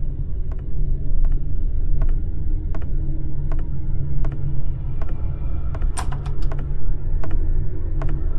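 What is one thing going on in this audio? Footsteps thud evenly on a hard floor.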